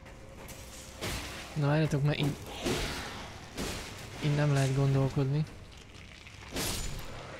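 A sword swishes through the air.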